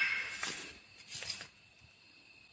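Wood shavings rustle and crunch under a hand.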